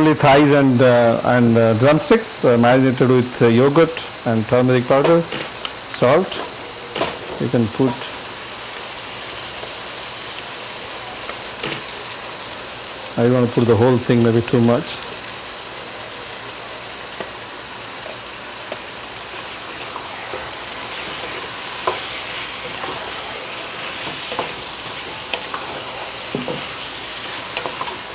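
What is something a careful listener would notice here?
A wooden spoon scrapes pieces of food from a metal bowl into a pot.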